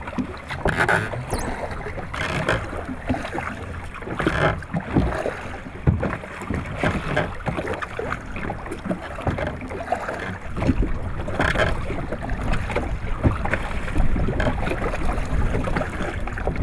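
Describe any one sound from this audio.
A fishing net drags and rustles over the side of a boat.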